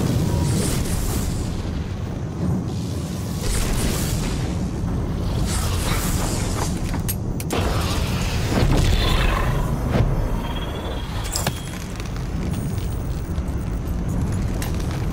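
A glowing energy orb hums and crackles with a deep rumble.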